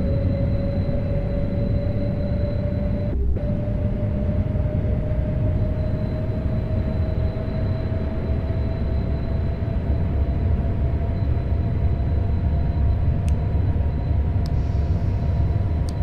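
An electric train motor whines steadily, slowly rising in pitch as the train speeds up.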